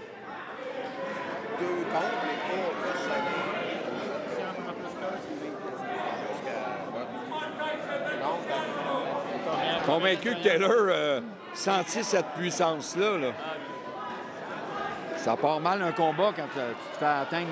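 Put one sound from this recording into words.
A crowd of people talks and murmurs in a large echoing hall.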